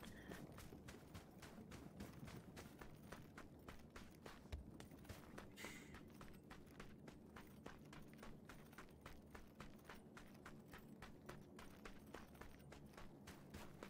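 Footsteps run quickly and steadily through grass.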